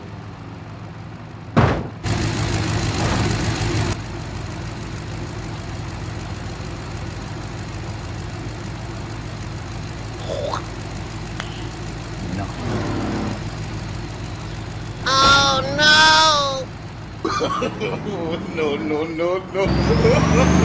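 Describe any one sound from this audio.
A car engine hums steadily as the car drives.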